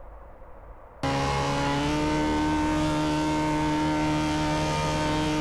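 Tyres screech on the road as a car drifts.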